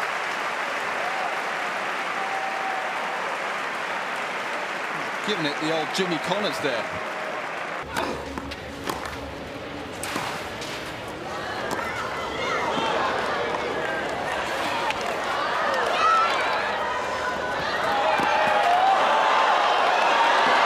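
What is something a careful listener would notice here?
A large crowd cheers and applauds.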